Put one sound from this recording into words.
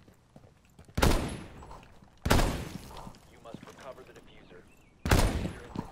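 A rifle fires single loud shots, a few seconds apart.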